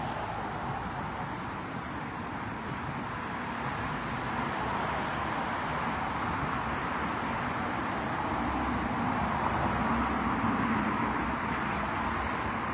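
Wind blows steadily against a microphone outdoors.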